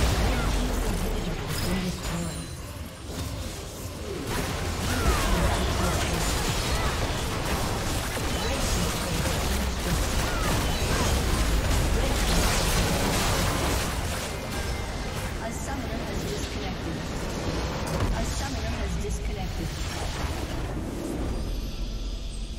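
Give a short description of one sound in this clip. Spell effects and blasts crackle and whoosh in a busy video game battle.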